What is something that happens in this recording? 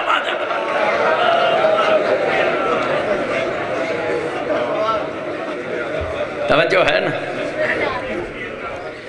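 A man recites with feeling into a microphone, heard through loudspeakers with echo.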